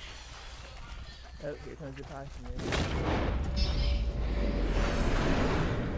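Footsteps run through tall grass.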